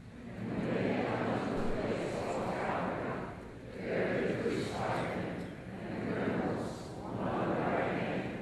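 A man reads aloud through a microphone in an echoing hall.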